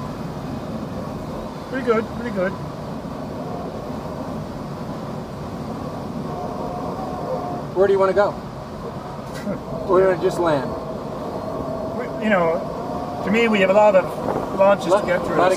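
Wind rushes steadily past a canopy in flight.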